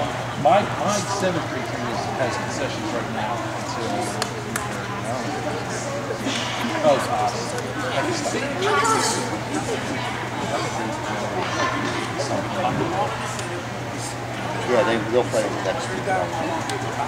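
Young girls chatter and call out nearby.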